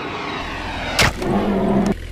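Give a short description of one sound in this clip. An explosion bursts.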